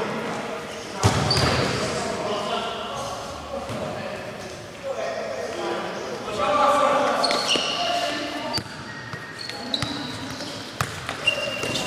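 A ball thuds when kicked.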